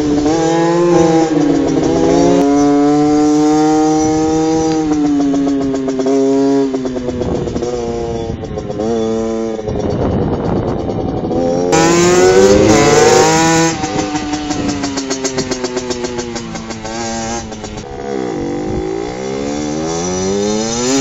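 A small motorcycle engine revs up and down, buzzing loudly.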